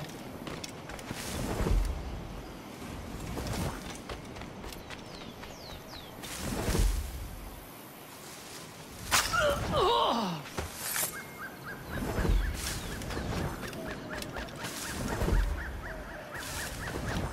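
Leaves and bushes rustle as someone pushes through dense plants.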